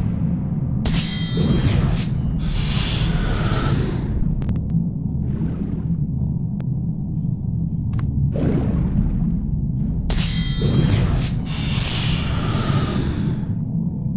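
Blades swish and clang in a fight.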